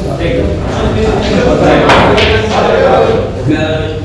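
Billiard balls knock together and roll.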